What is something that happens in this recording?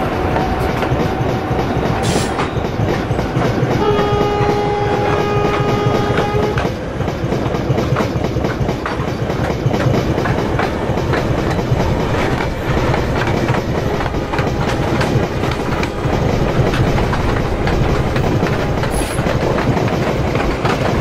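A passenger train rumbles steadily along the rails.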